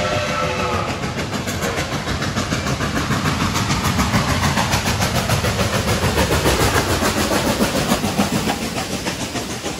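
A steam locomotive chuffs heavily as it approaches and passes close by.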